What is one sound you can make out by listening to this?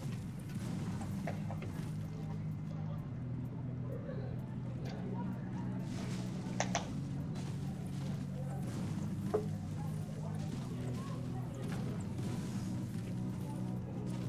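A pickaxe strikes wood and stone with sharp thuds.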